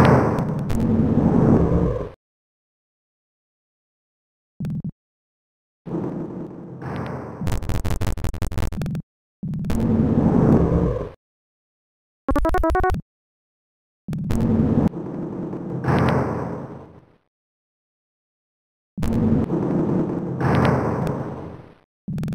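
A heavy metal door slides open with a low rumbling grind.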